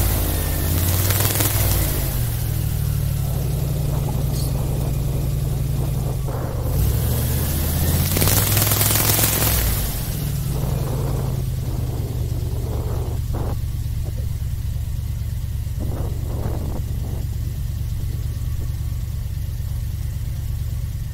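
An airboat's engine and propeller roar steadily nearby.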